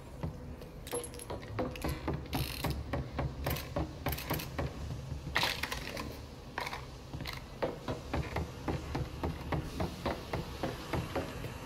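Footsteps run quickly across a wooden floor.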